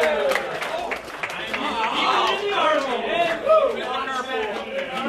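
Several men talk and laugh loudly nearby, in a room with a slight echo.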